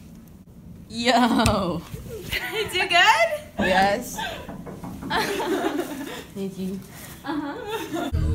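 A young girl squeals and talks excitedly close by.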